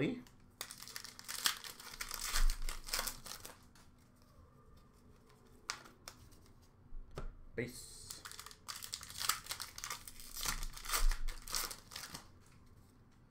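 Plastic card packs crinkle and rustle in a person's hands.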